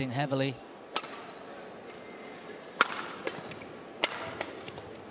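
A racket strikes a shuttlecock with sharp pops.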